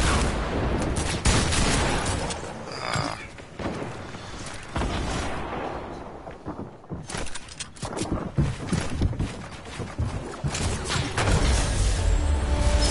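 Quick wooden knocks and thuds sound as walls and ramps go up.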